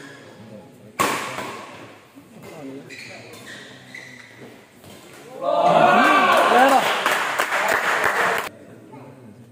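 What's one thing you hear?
A racket smacks a shuttlecock in an echoing hall.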